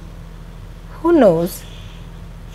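A second woman speaks sharply, close by.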